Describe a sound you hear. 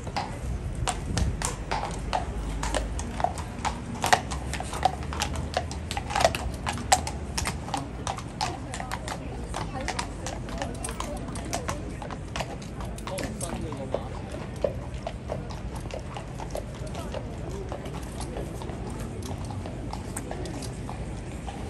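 Horse hooves clop on hard stone.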